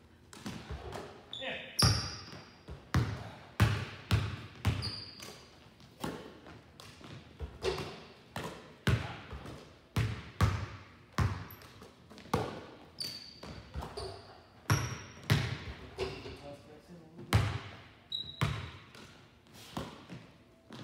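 Basketballs bounce on a hardwood floor in a large echoing gym.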